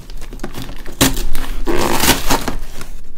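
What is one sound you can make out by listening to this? A cardboard box lid is pulled open with a rough tearing scrape.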